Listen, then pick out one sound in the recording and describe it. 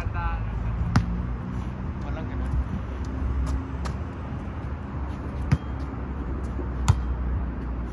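A soccer ball thumps off a foot.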